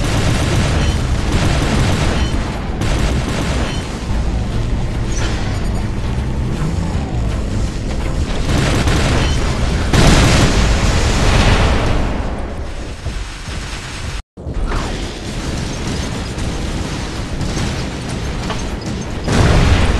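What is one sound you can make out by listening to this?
Robot guns fire in rapid bursts.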